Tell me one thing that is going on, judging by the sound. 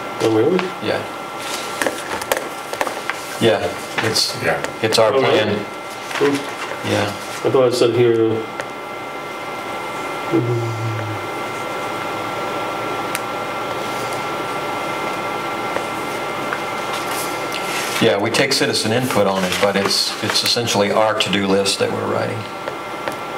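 Middle-aged and elderly men talk calmly, heard through room microphones.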